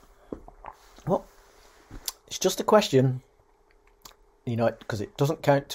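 A middle-aged man speaks calmly and close to the microphone, in short bursts.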